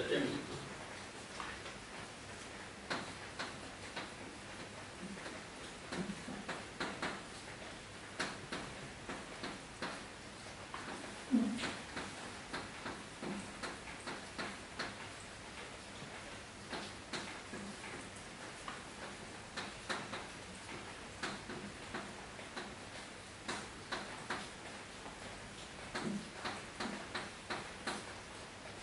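Chalk taps and scratches on a blackboard in sharp, rapid strokes.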